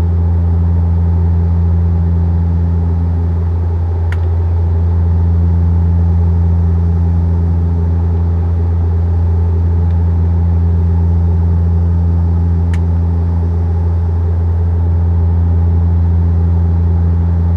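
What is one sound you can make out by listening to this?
A jet engine drones steadily and low inside an airplane cabin in flight.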